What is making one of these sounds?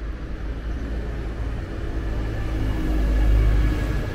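A bus engine rumbles close by and grows louder.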